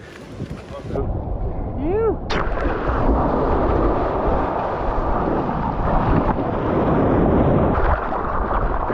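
Water splashes and churns close by.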